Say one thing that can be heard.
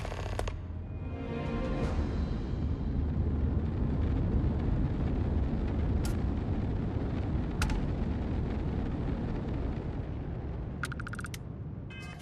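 A spacecraft engine rumbles low and steadily.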